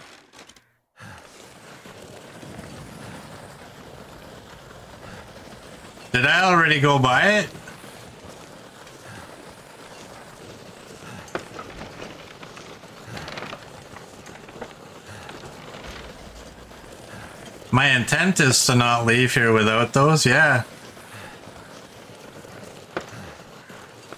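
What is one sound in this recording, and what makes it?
Wind blows steadily across open snow.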